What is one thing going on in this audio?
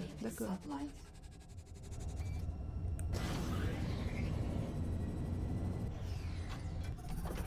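A spaceship engine roars steadily, with a low rumble that swells louder partway through.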